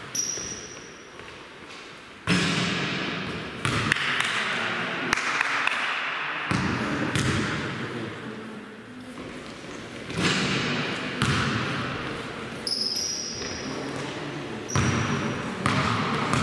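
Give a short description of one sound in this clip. Players' footsteps patter across the court.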